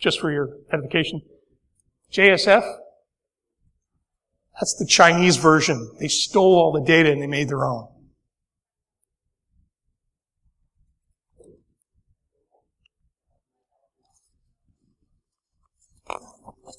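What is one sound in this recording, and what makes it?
A man speaks into a microphone in a large room, giving a talk with pauses.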